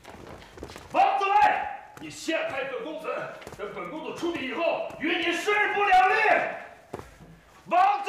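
A man speaks angrily in an echoing room.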